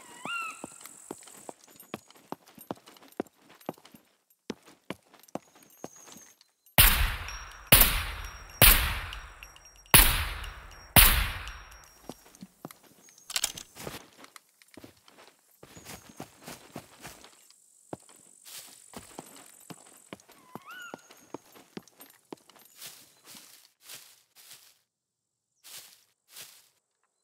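Footsteps crunch on grass and rough ground.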